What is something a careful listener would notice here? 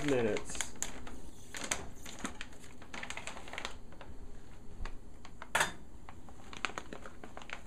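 A plastic food pouch crinkles and rustles in hands.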